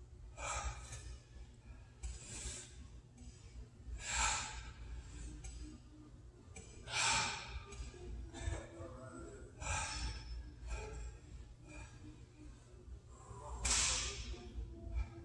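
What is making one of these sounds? A man breathes out sharply and rhythmically while exercising.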